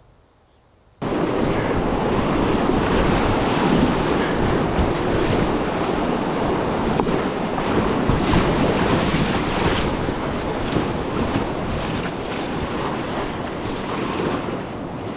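Rapids rush and roar loudly close by.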